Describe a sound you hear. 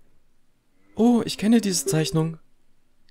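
A fairy lets out a bright, chirping cry.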